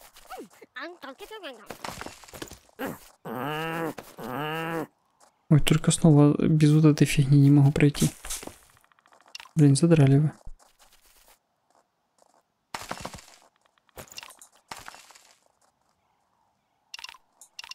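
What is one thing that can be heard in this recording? Pickaxes chip and knock at ice in short bursts.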